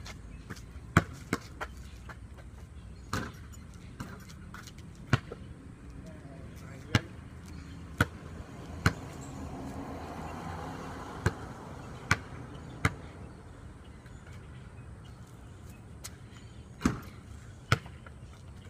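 A basketball bounces on concrete outdoors.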